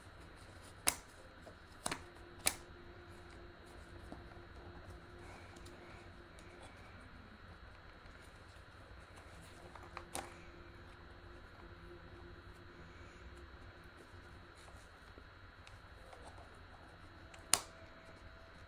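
Plastic parts click and knock sharply as a headset is handled.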